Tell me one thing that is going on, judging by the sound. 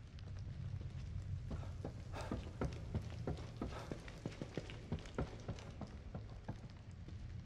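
Footsteps climb a flight of stairs.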